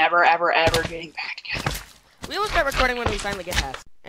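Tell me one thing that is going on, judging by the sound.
A game character hits the ground hard after a fall.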